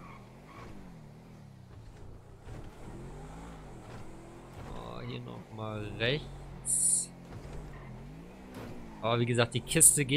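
A sports car engine revs high and rises and falls in pitch as the car speeds along.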